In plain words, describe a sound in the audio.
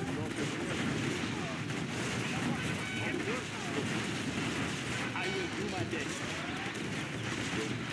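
Explosions boom in a battle.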